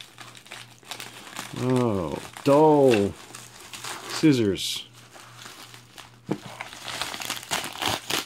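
A padded paper envelope crinkles and rustles as hands open it.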